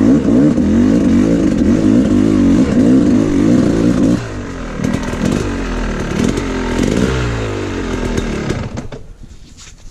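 A motorbike engine revs loudly, then cuts out.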